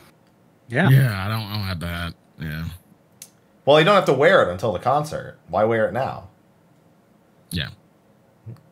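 A man speaks with animation through a headset microphone over an online call.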